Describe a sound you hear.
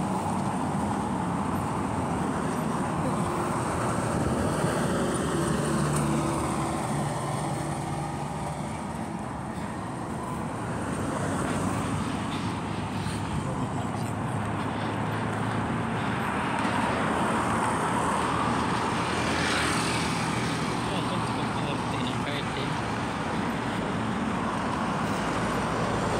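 Cars drive past on a road nearby.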